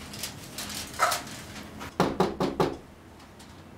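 Someone knocks on a door several times.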